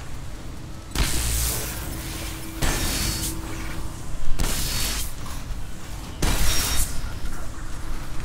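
A gun fires loud energy blasts several times.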